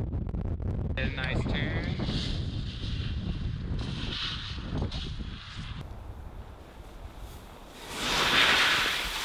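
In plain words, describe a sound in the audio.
Skis hiss and scrape across snow in quick bursts.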